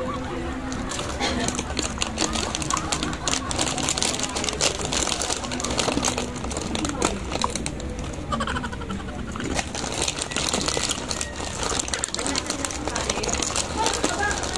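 A plastic snack bag crinkles and rustles in a hand.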